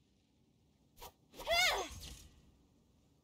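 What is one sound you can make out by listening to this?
A sword swishes through the air with a bright ringing whoosh.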